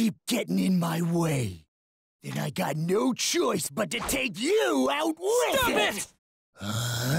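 A young man shouts aggressively, close by.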